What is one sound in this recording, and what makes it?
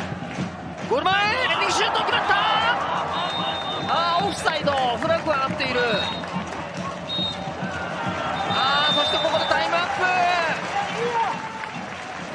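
A large crowd roars and cheers outdoors.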